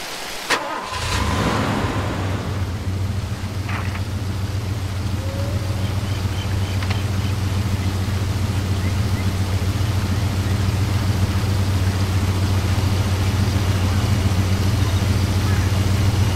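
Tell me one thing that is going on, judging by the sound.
A vehicle engine idles with a steady low rumble.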